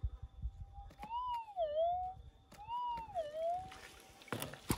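A metal detector beeps with a warbling tone.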